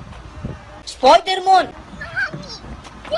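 A young child shouts.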